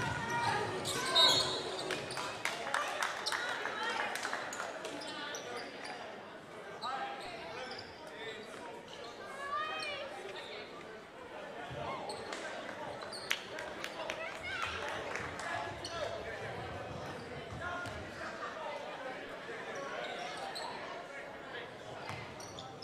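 Sneakers squeak sharply on the hardwood floor.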